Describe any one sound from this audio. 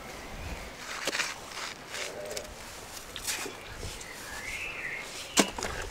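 A knife slices through a juicy watermelon with soft crunching.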